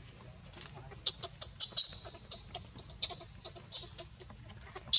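Dry leaves rustle and crackle under a monkey's feet.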